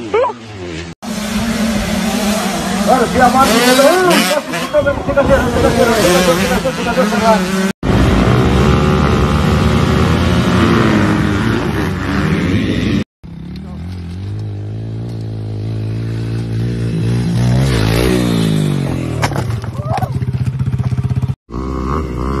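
Dirt bike engines roar and rev loudly.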